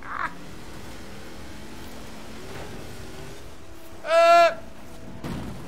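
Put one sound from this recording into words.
Metal scrapes and crunches as cars collide.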